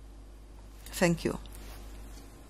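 A woman speaks briefly close by.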